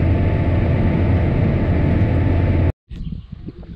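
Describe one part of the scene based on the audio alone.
A tractor engine rumbles loudly and steadily.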